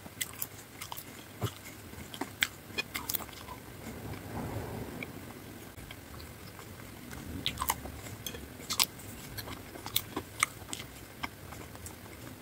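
Fries crinkle and tap as fingers pick them up.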